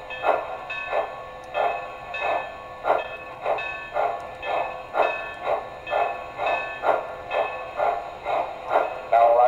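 A model steam locomotive chuffs in a steady, even rhythm.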